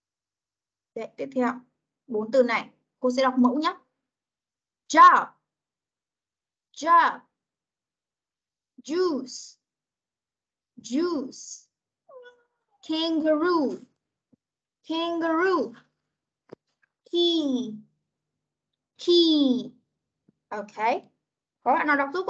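A young child repeats words over an online call.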